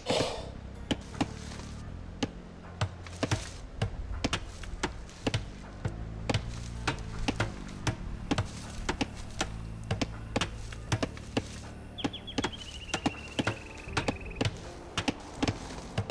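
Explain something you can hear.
Hammers knock steadily on a building under construction.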